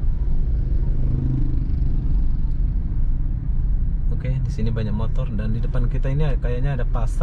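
Motorbikes ride by on the street nearby.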